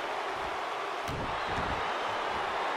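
A heavy body slams onto a springy mat with a thud.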